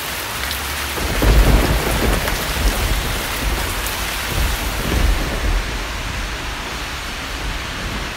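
Wind gusts roar outdoors.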